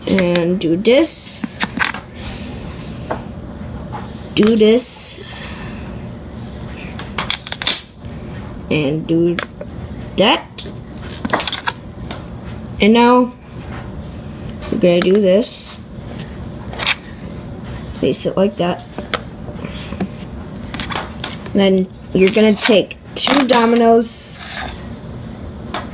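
Plastic dominoes click as they are set down on top of each other.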